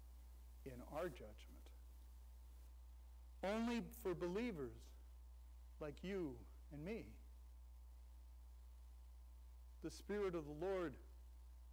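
An elderly man speaks calmly through a microphone in a large echoing room, with pauses between phrases.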